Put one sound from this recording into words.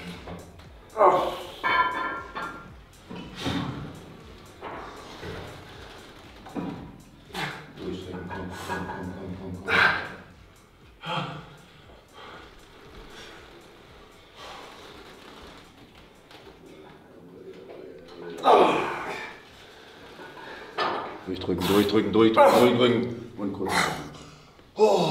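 A young man grunts and groans with strain.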